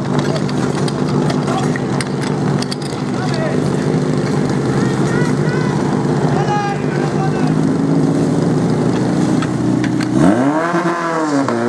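Spectators cheer and shout outdoors.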